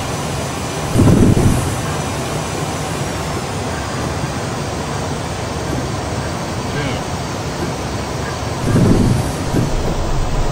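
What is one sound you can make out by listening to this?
Aircraft wheels thump onto a runway.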